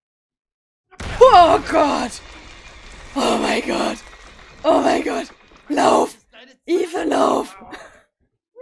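A young woman speaks with animation and laughs close to a microphone.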